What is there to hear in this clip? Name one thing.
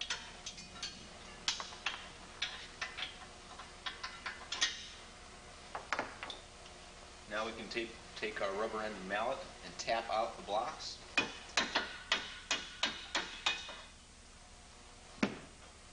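Parts of a mechanism click and clack.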